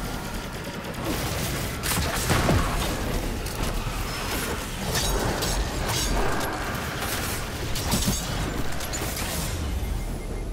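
Gunfire and energy blasts crackle in rapid bursts.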